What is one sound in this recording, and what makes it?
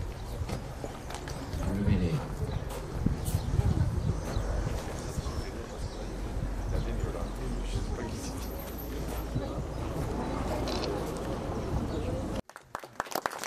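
A crowd of men and women murmurs quietly nearby.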